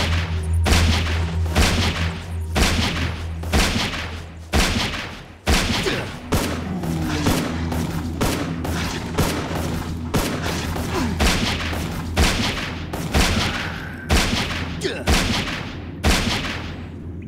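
Gunshots fire repeatedly.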